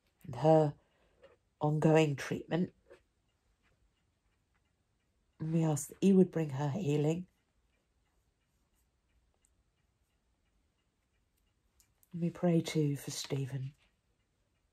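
An elderly woman speaks calmly and close to a microphone, with pauses.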